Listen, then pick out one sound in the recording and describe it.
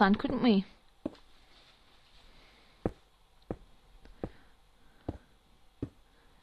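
Stone blocks knock dully as they are placed, one after another.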